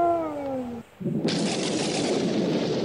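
A television hisses with static.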